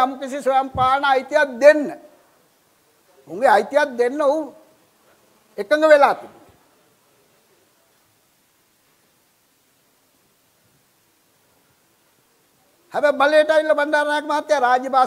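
An elderly man speaks with animation through a microphone, pausing between phrases.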